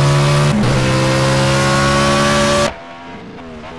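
A racing car engine roars loudly up close.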